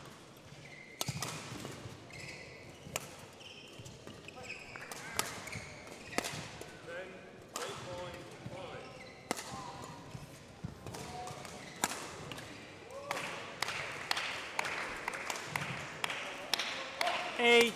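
Rackets strike a shuttlecock back and forth in a large echoing hall.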